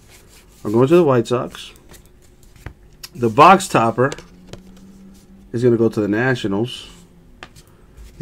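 Trading cards rustle and slide as they are handled.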